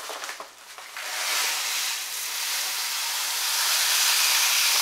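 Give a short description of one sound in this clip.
Dry grain pours steadily into a tub of water with a rushing hiss.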